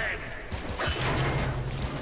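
A blade clangs against metal.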